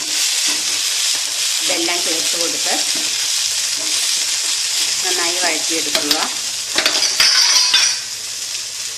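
A spoon scrapes and clinks against a metal pan.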